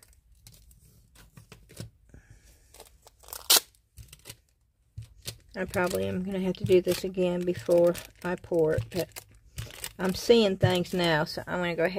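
Adhesive tape peels off a roll and crinkles.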